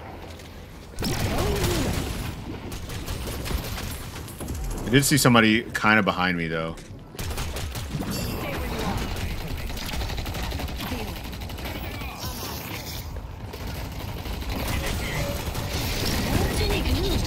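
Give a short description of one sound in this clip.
Gunfire and game effects crackle and boom steadily.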